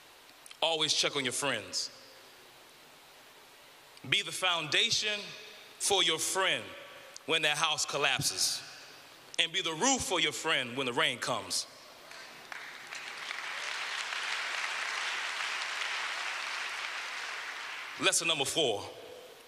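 A man speaks with passion into a microphone in a large echoing hall.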